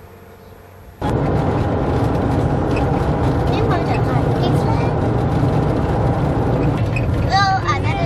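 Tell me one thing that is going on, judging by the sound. A car drives along a road with a steady roar.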